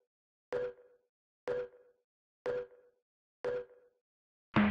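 A game countdown ticks once a second.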